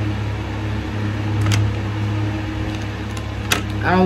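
A paper packet crinkles in a woman's hands.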